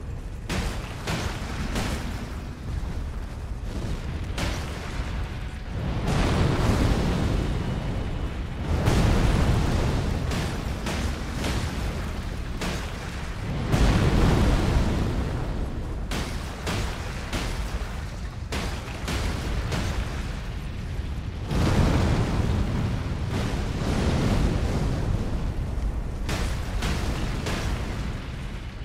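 Sword blows clash and thud.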